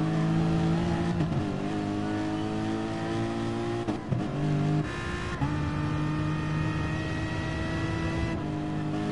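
A racing car engine roars at high revs, dipping briefly at each gear change.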